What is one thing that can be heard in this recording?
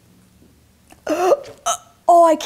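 A young woman cries out loudly in disgust.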